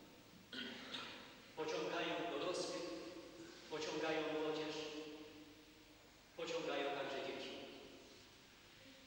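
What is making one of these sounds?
An elderly man speaks slowly and solemnly through a microphone in an echoing hall.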